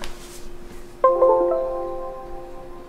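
A computer plays a short error chime.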